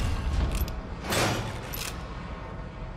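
A heavy metal lever grinds and clanks as it is pulled.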